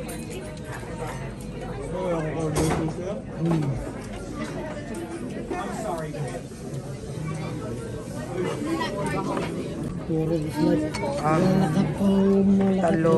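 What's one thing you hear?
Young men and women chat with animation close by.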